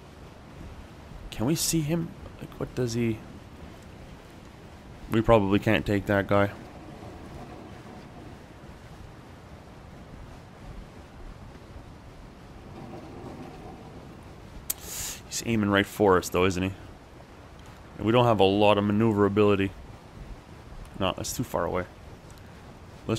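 Rough sea waves surge and break.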